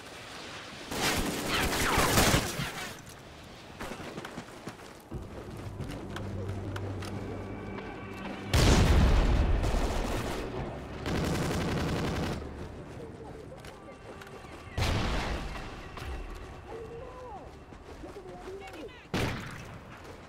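Rifle shots crack loudly, each followed by a rumbling echo.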